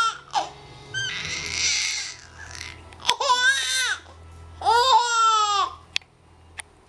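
A baby squeals and babbles happily close by.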